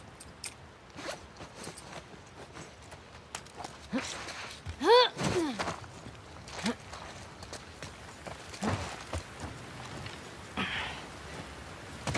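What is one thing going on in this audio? Footsteps scuff and thud on a hard floor and wet ground.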